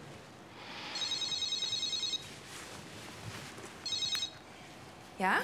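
A mobile phone rings with an electronic tune.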